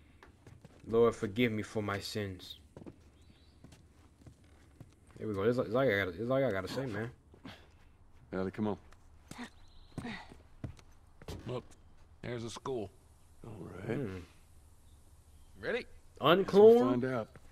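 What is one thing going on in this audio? A man speaks calmly and in a low voice, close by.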